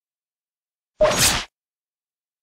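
A short interface chime plays as a menu opens.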